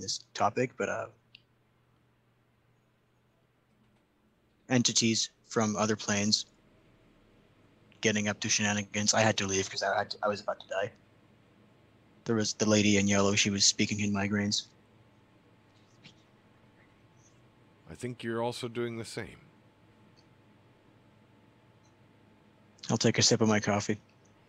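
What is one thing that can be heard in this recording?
A man speaks calmly into a close microphone over an online call.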